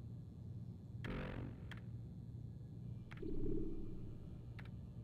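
Computer menu selections make short electronic clicks and tones.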